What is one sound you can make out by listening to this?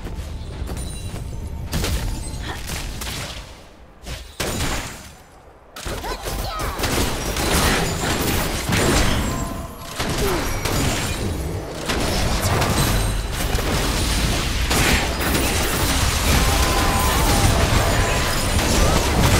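Game attacks thud and clang repeatedly.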